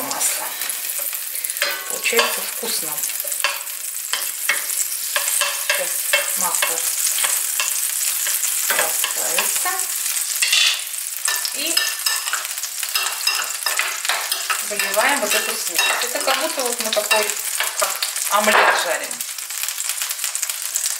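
Butter sizzles and crackles in a hot pan.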